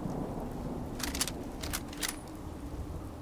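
A rifle's bolt clicks and clacks as it is reloaded.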